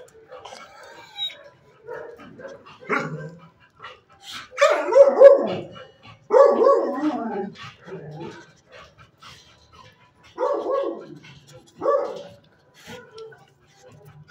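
A dog's paws patter on a hard floor.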